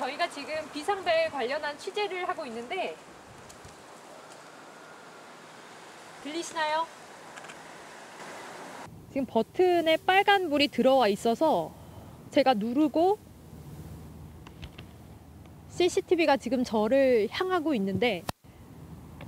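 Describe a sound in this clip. A young woman speaks calmly into a microphone close by.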